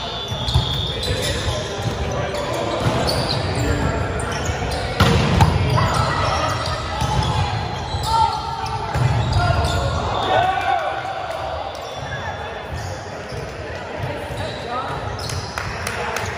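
Volleyballs thump as players hit them in a large echoing hall.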